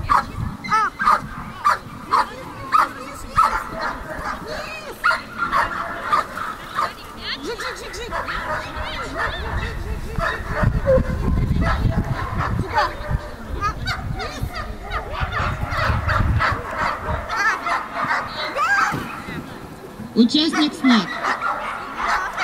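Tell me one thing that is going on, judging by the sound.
A woman calls out commands to a dog, heard outdoors at a distance.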